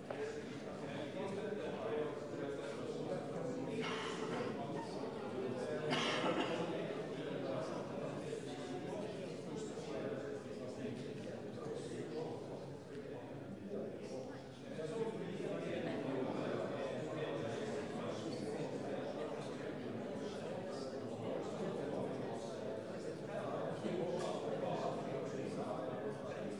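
A crowd of people murmurs and chatters in a large echoing hall.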